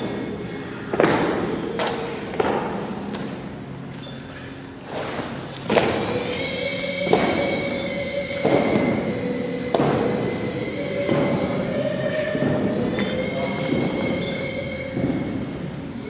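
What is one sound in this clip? Soldiers' boots stamp on a hard floor, echoing through a large hall.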